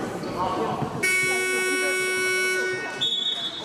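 A referee's whistle blows a long, steady blast.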